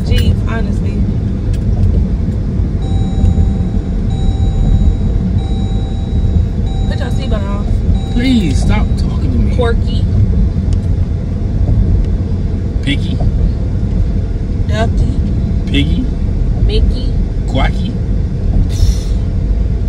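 A car engine and road noise rumble steadily from inside the car.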